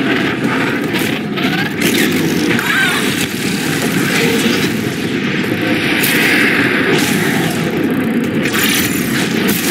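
Electricity crackles and buzzes loudly.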